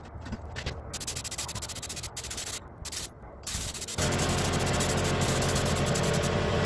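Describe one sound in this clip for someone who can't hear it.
A spray gun hisses in bursts, then steadily.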